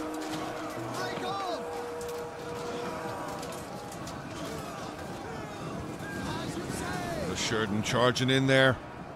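A large crowd of soldiers shouts and yells in battle.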